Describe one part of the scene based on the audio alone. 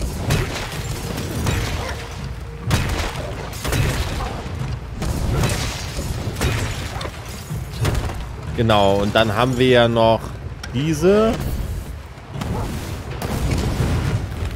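Energy crackles and zaps as a weapon charges.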